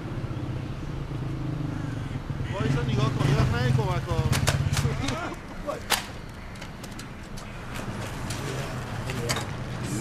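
A motor scooter engine idles and putters close by.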